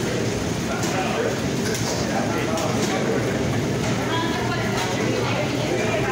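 A metal bowl clatters as food is tossed in it.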